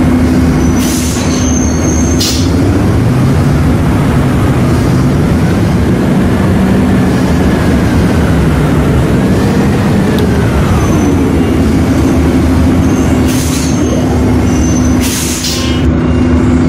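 Air brakes hiss in short sharp bursts.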